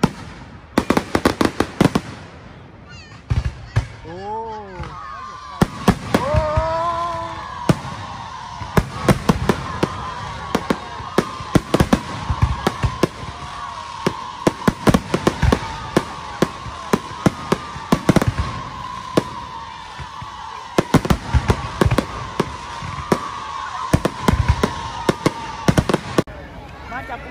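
Fireworks crackle and sizzle steadily.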